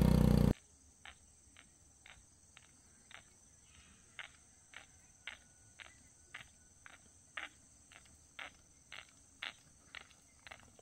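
Running footsteps slap on a paved road, growing closer.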